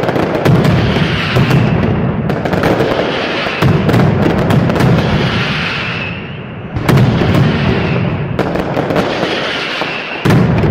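Firecrackers burst in rapid, deafening bangs overhead.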